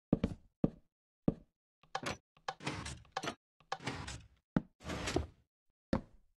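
Wooden levers click into place, one after another.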